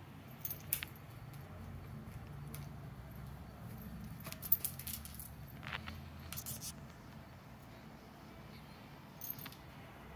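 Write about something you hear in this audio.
A cat's paws scuffle and tap on a hard floor while batting at a toy.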